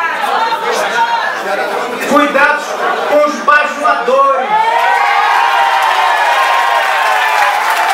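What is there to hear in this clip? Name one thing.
A man speaks loudly and with animation into a microphone, amplified through loudspeakers in an echoing hall.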